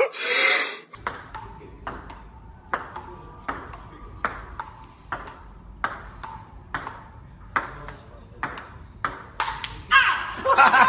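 A ping-pong ball clicks rapidly back and forth on a table and paddles.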